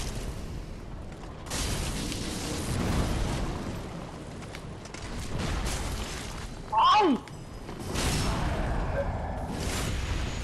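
Metal weapons clash and swipe in a fight.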